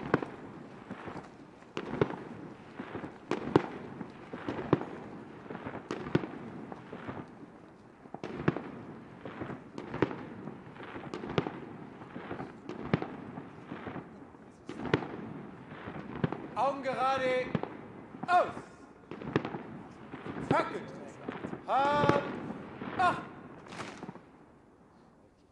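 Military snare drums beat a slow marching rhythm outdoors, echoing.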